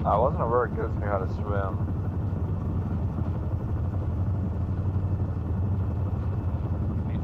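A helicopter engine drones low and steady.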